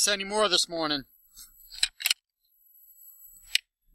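A metal latch rattles and clicks.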